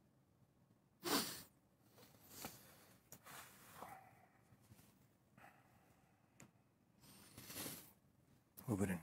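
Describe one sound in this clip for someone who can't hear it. A man laughs softly into a microphone.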